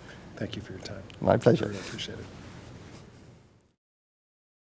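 A middle-aged man speaks into a microphone, heard close up.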